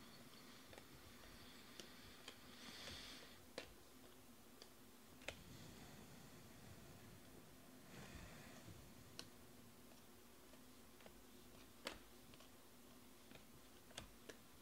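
Glossy trading cards click and rustle as they are flipped through by hand.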